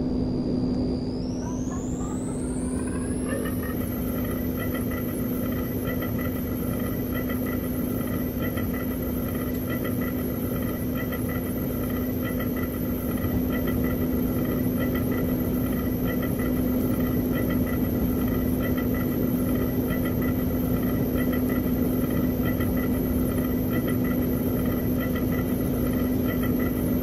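An electric train motor whines, rising in pitch and then holding steady.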